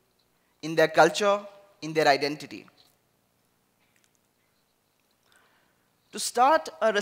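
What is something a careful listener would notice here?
A man speaks with animation through a headset microphone, in bursts with pauses.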